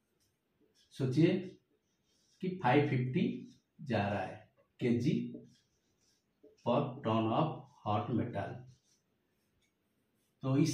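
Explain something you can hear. A man speaks calmly and steadily nearby.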